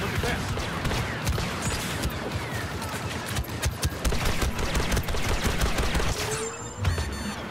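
Rapid blaster shots fire in bursts.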